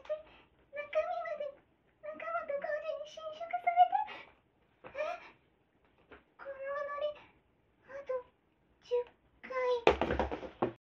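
A young girl speaks with animation in short bursts close by.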